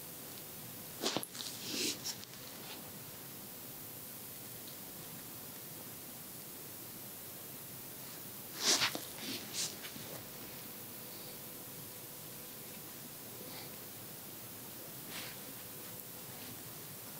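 A cotton swab rustles and scrapes close against an ear.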